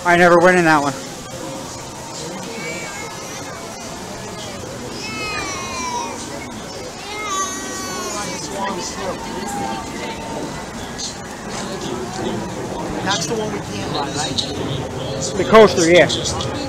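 A crowd of men, women and children chatters nearby outdoors.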